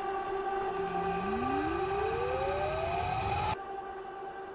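A magic chime rises in pitch.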